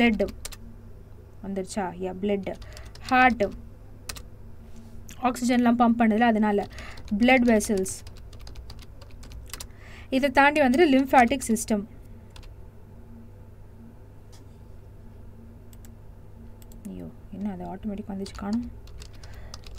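A young woman speaks calmly and clearly into a close microphone, in short bursts with pauses.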